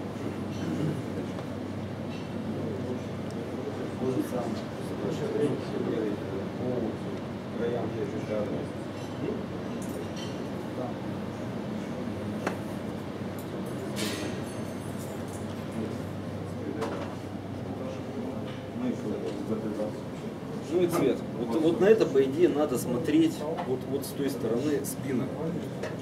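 A crowd of men murmur and chatter indoors.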